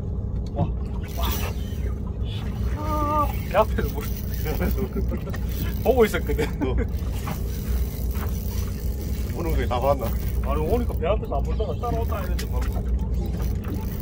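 A fishing reel's drag buzzes as line is pulled out.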